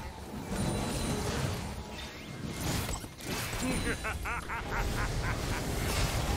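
Game spell blasts and weapon clashes ring out in a busy fight.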